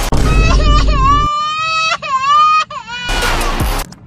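A young child cries and wails loudly.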